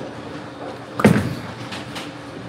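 A bowling ball thuds onto the lane.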